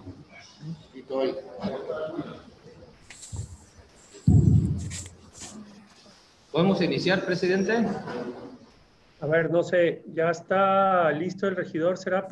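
A man speaks into a microphone, heard over an online call.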